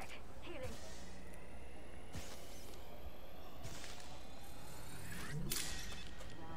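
A medical kit whirs and hums in a video game.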